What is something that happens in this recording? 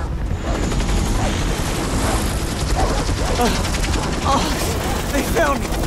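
A helicopter's rotor thuds loudly nearby.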